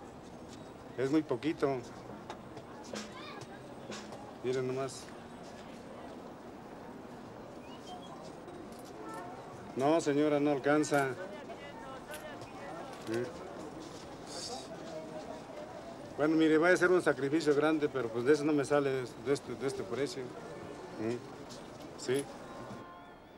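A middle-aged man talks cheerfully up close.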